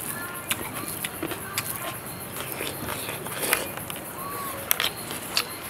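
Fingers squish and pick through moist rice.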